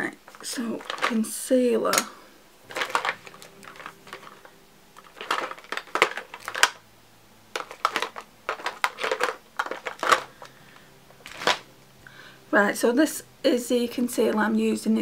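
A woman talks calmly and close to the microphone, in short bursts with pauses.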